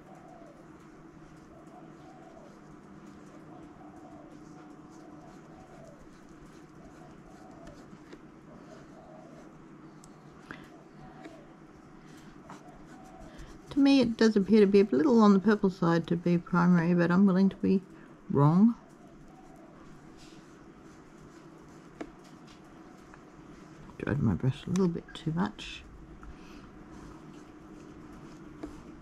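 A paintbrush dabs and brushes softly on paper.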